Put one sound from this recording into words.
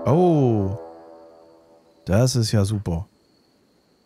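Short electronic game interface tones chime.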